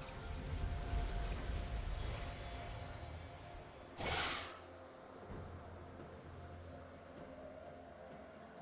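Video game sound effects play.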